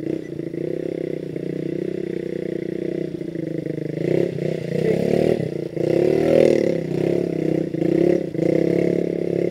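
A motorcycle engine hums steadily and revs up and down.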